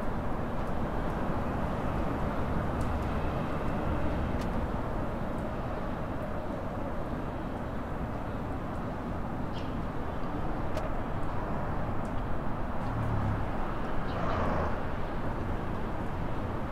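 A car engine hums steadily as a vehicle drives along a road.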